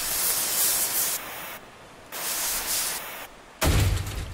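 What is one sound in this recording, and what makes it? A blowtorch hisses in short bursts.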